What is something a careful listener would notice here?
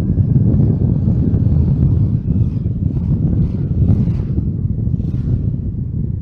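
Another motorbike passes close by.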